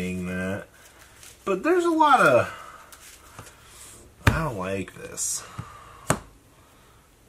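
Playing cards tap softly on a table as they are handled.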